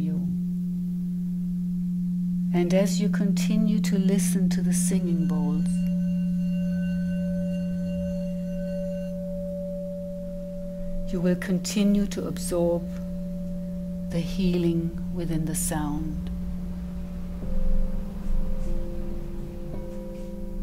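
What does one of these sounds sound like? Crystal singing bowls ring with a steady, humming tone.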